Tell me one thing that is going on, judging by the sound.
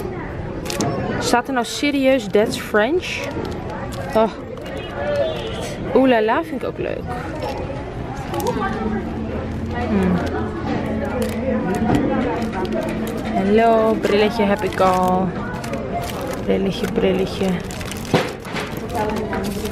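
Paper card packets rustle and tap as a hand sorts through them.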